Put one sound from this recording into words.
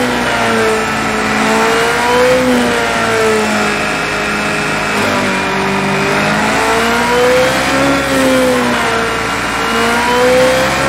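A racing car engine whines loudly, its pitch rising and falling as it shifts gears.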